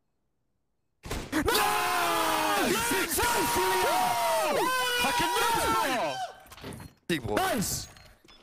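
Several young men shout excitedly over headset microphones.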